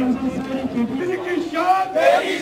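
An elderly man speaks steadily and earnestly, close to a microphone.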